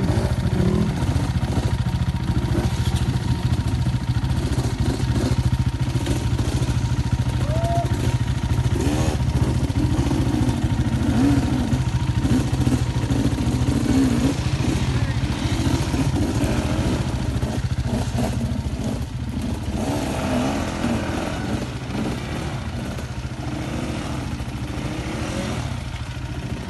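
Dirt bike engines rev and strain up a steep slope.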